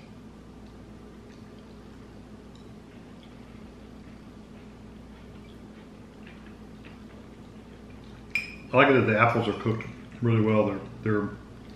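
Spoons clink faintly against bowls.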